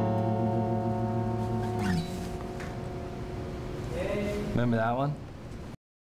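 An acoustic guitar is strummed and rings out nearby.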